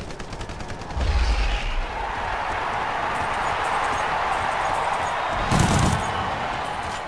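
A heavy explosion booms.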